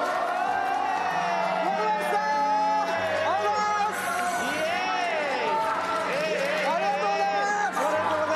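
A group of young men and women cheer and shout excitedly.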